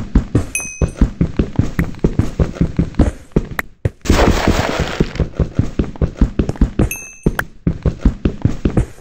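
A pickaxe chips rapidly and steadily at stone.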